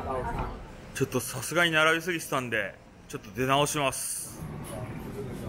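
A young man speaks close up, with animation.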